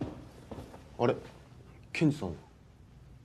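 A woman asks a question in a tense voice.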